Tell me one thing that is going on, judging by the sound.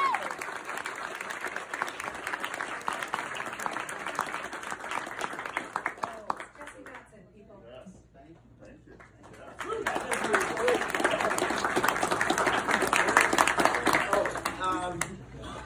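An audience claps and cheers in a large room.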